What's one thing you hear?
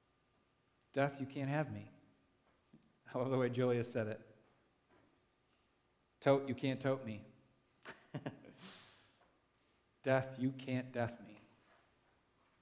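A young man speaks calmly through a microphone in short phrases, with pauses between them.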